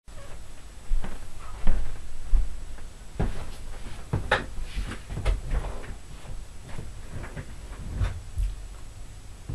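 A chair creaks and bumps as a man sits down.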